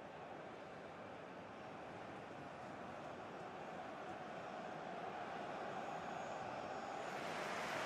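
A large stadium crowd roars and cheers steadily, slowly growing louder.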